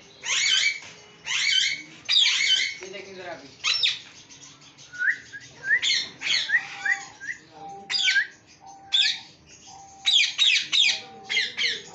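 A boy whistles sharply.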